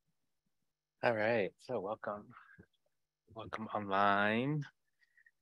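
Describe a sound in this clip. A man speaks into a microphone in a drawn-out, singing tone.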